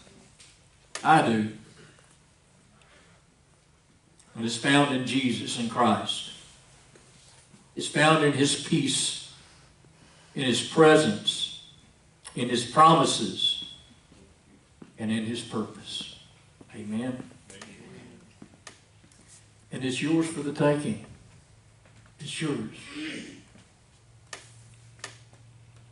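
A middle-aged man speaks slowly and calmly through a microphone, with pauses, in an echoing hall.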